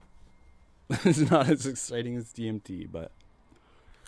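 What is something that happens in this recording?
A young man laughs briefly into a close microphone.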